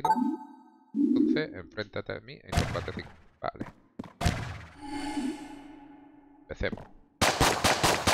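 Game sound effects blip and chime.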